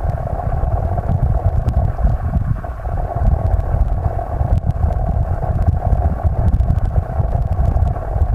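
Small pebbles click and tick underwater.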